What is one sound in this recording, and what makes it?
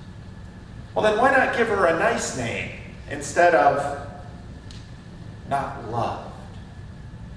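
An older man speaks with animation to a room, his voice echoing slightly.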